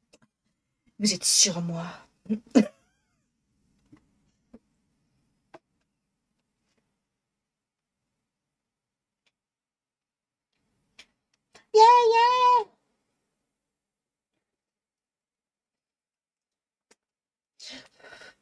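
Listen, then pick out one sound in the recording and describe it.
A young woman talks and laughs with animation into a nearby microphone.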